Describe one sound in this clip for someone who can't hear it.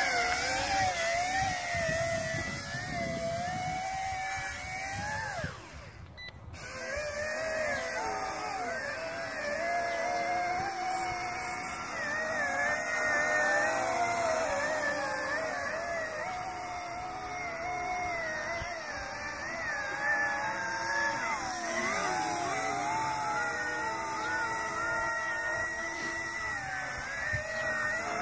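A drone's propellers whine steadily, rising and falling in pitch.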